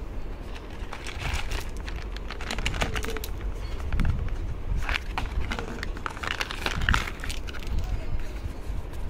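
Small plastic tubes tumble out of a box and clatter onto each other.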